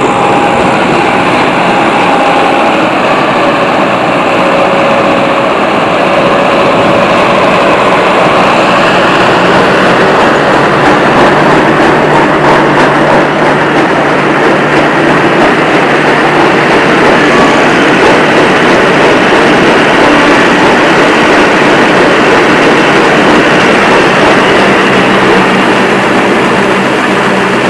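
A combine harvester engine roars loudly and steadily close by.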